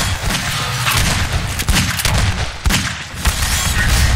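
Gunshots crack in quick bursts, echoing off hard walls.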